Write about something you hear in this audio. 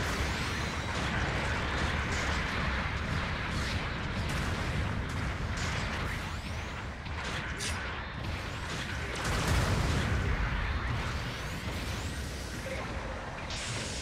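Jet thrusters roar as a giant robot boosts across the ground.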